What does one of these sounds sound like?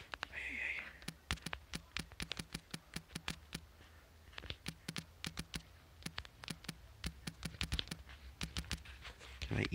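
Phone keyboard keys click rapidly while typing.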